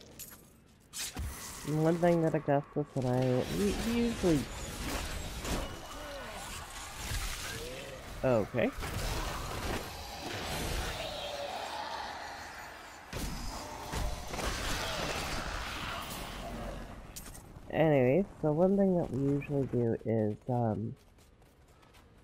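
Spells and weapons crackle and clash in a game battle.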